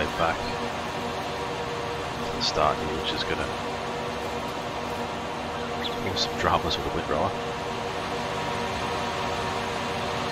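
A mower whirs as it cuts grass.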